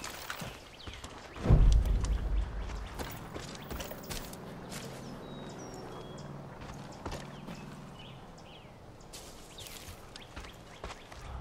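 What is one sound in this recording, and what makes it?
Footsteps crunch on a dry forest floor.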